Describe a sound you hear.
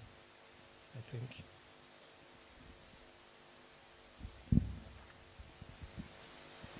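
A man speaks briefly into a microphone in a calm, halting way.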